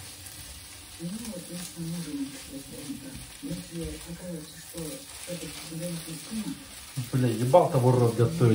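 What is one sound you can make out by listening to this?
A young man talks calmly close by, then louder.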